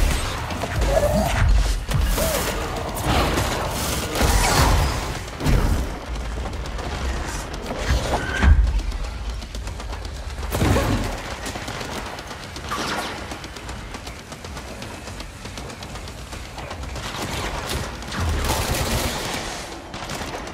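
Gunshots and explosions boom and crack in bursts.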